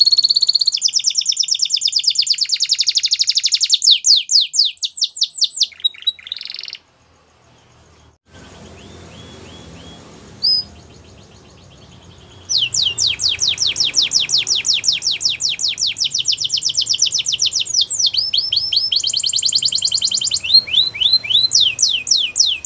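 A canary sings loud, rapid, high trills close by, breaking off for a few seconds in the middle.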